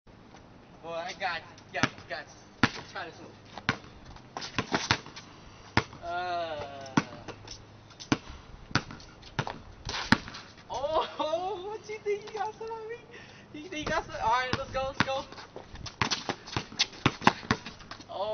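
A basketball bounces on concrete outdoors.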